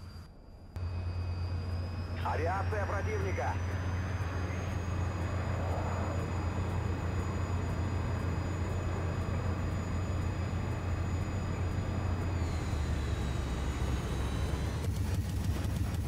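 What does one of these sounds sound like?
A helicopter engine drones steadily with whirring rotor blades.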